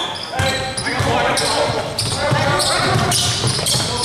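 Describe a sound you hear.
A basketball thuds as it is dribbled on the floor.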